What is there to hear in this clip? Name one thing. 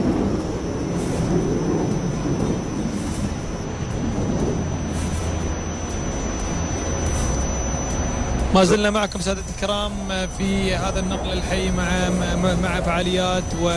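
A jet fighter roars overhead.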